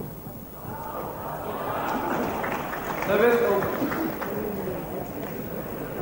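A crowd cheers and applauds in a large echoing hall.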